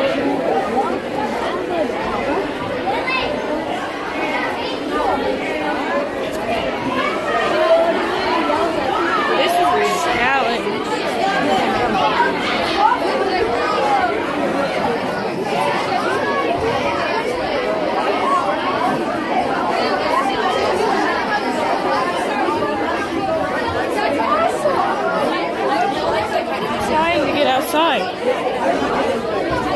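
Many voices chatter loudly and overlap close by.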